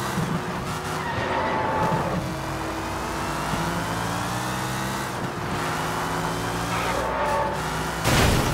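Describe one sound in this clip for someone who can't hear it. Tyres screech on a wet road.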